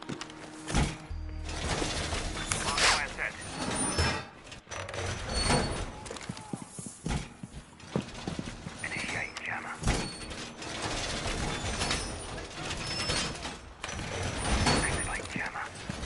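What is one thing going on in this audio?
Heavy metal panels clank and thud against a wall.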